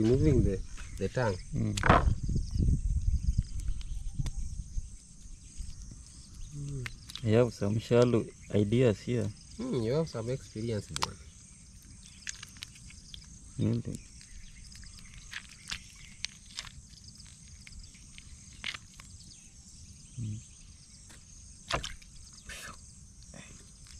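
Water splashes and sloshes in a basin.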